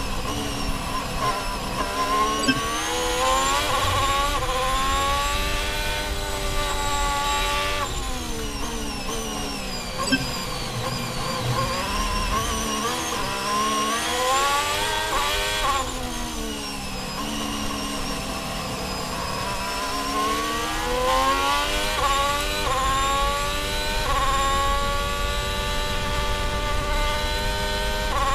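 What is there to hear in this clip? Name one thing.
A racing car engine screams close by, rising and falling in pitch as it shifts gears and brakes.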